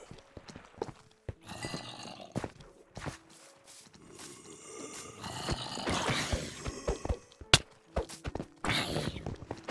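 Zombies groan low and hoarsely nearby.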